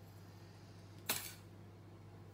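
A spoon taps against a metal pot.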